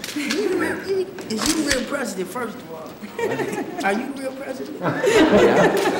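A boy speaks and laughs.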